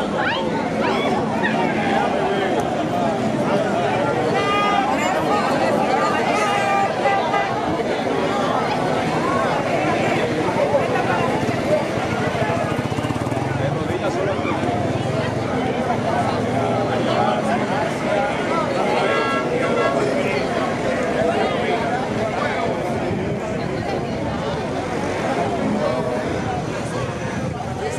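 A crowd of men and women chants and shouts outdoors.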